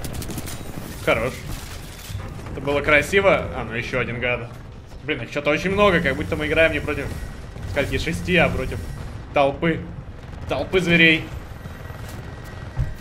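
Gunfire and explosions rattle from a game.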